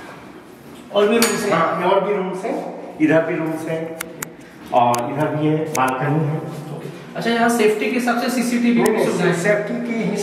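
A second man talks close by.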